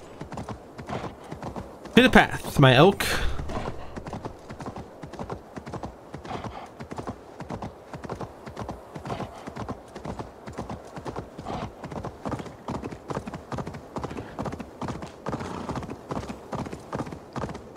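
Hooves thud steadily on snowy ground.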